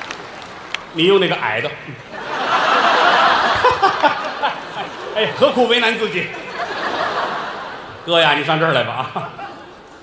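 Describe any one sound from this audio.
A middle-aged man speaks into a microphone, heard over loudspeakers in a large hall.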